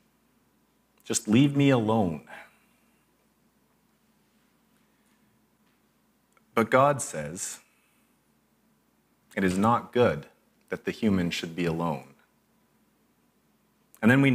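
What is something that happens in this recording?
A young man speaks calmly through a microphone, pausing between phrases.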